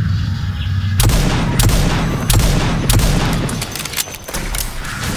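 A pistol fires shots that crack sharply, one after another.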